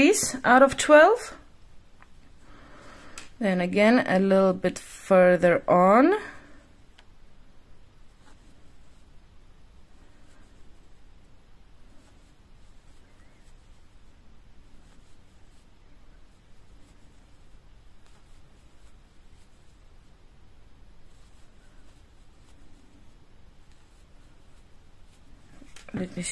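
A crochet hook softly scrapes and rustles through yarn.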